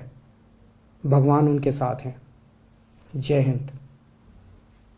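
A middle-aged man speaks calmly into a microphone in short phrases.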